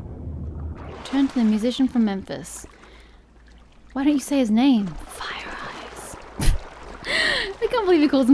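Water splashes as a swimmer breaks the surface and swims.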